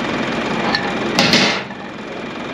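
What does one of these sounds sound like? A hydraulic hose coupling clicks into place with a metallic clunk.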